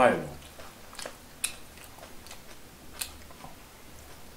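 Food crunches and clicks as a young man eats.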